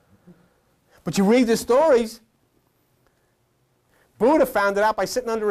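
An older man speaks with animation in bursts, as if lecturing.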